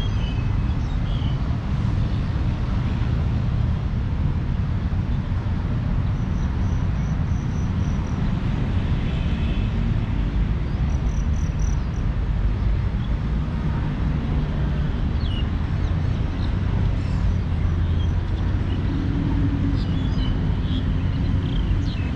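Wind blows steadily and rumbles outdoors.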